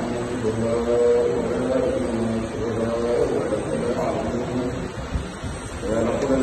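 An elderly man chants in a steady, melodic voice into a microphone.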